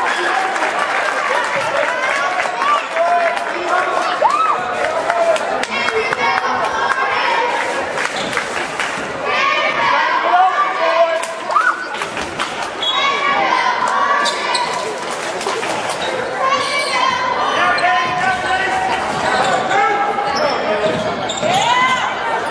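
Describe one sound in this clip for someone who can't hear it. A crowd chatters and calls out in an echoing gym.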